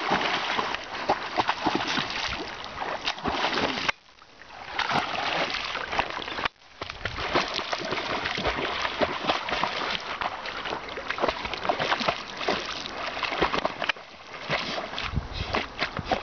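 A dog paddles through lake water, splashing.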